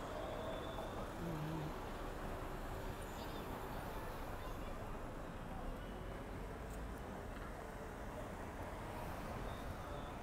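A car passes close by with a rushing sound.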